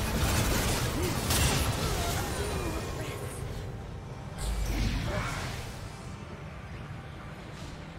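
Game spell effects burst and crackle in a busy fight.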